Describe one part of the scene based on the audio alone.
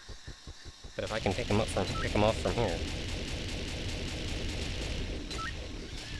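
A laser gun fires rapid bursts of shots.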